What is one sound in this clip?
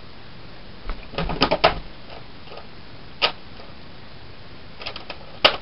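A plastic toy gun clicks and rattles as it is handled.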